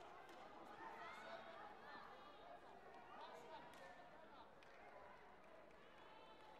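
Spectators and officials chatter in a large echoing hall.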